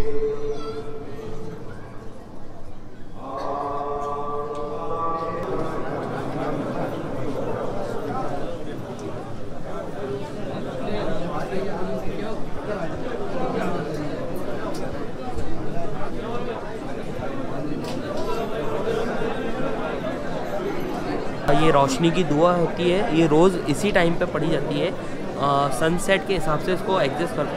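A crowd of men murmurs and chants in a large echoing hall.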